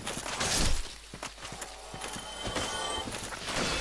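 A sword swings with a whoosh.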